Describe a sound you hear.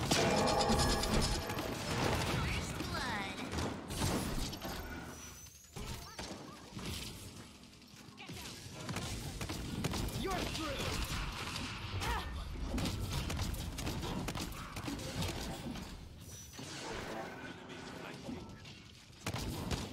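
A video game energy gun fires rapid shots.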